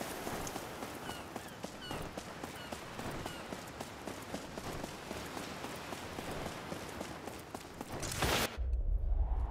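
Quick footsteps patter on stone steps.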